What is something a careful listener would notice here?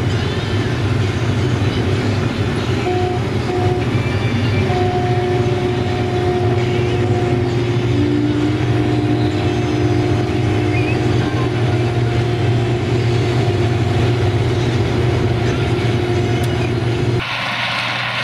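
A combine harvester's engine drones loudly from inside the cab.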